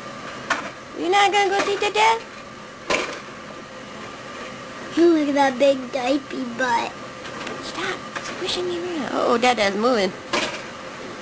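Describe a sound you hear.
A toddler babbles and squeals nearby.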